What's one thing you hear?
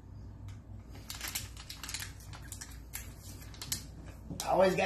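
Paper bills rustle as they are handled.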